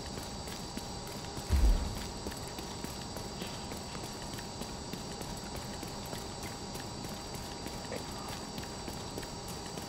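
Footsteps crunch over debris at a steady walking pace.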